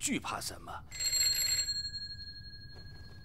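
A telephone rings briefly.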